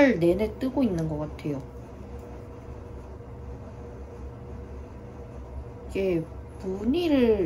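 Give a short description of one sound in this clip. Knitting needles click softly.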